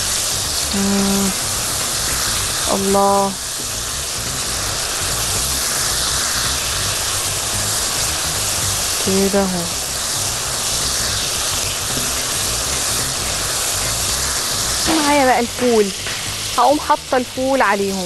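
Food sizzles and crackles steadily in a hot pan.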